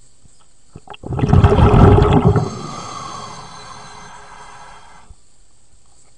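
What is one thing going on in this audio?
Water rushes and churns, muffled as if heard underwater.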